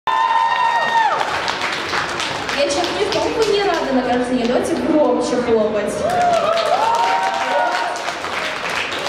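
A young girl sings into a microphone in a large echoing hall.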